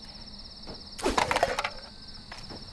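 Trash clatters into a metal bin.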